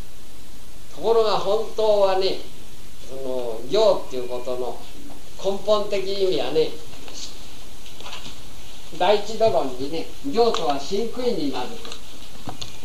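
A man speaks calmly outdoors, close by, in short phrases.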